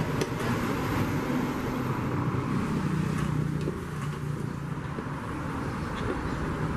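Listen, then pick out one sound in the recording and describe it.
Metal parts click and scrape together close by.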